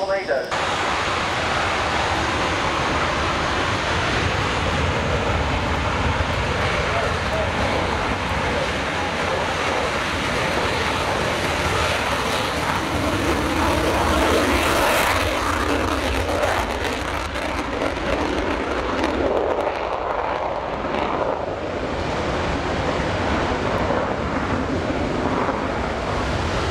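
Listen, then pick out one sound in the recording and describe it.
A jet aircraft roars loudly overhead, swelling and fading.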